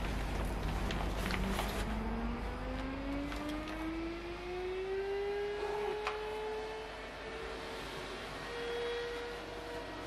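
Fabric rustles and rubs as a plush toy is handled.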